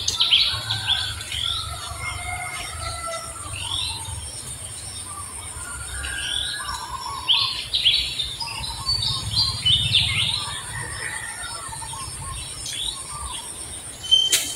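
A baby monkey squeals with short, high cries.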